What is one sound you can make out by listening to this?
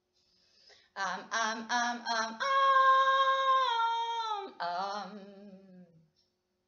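A young woman sings a sustained melody close to a microphone.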